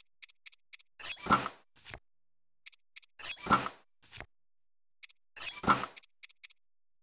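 A soft whoosh sweeps as a menu page turns.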